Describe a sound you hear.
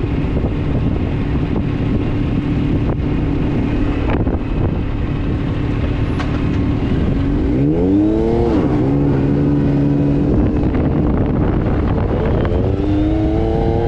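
An engine roars and revs up and down as a vehicle drives fast.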